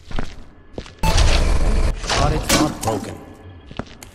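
A metal bucket clatters as it drops to the floor.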